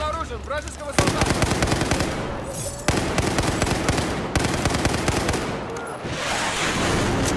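A rifle fires rapid bursts of shots at close range.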